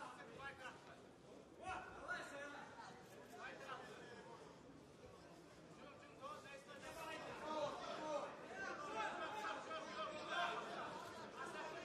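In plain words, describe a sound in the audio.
A crowd cheers and shouts loudly in a large hall.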